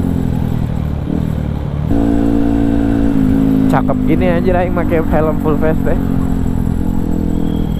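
A motorcycle engine hums steadily and rises in pitch as the bike speeds up.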